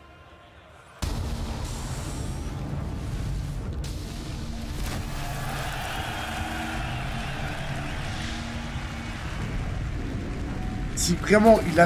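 The ground bursts apart with a heavy, rumbling roar.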